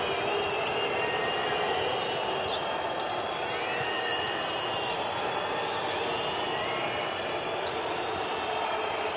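A large crowd cheers and chants steadily in an echoing arena.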